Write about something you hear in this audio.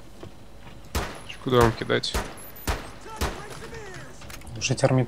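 Pistol shots crack in quick succession.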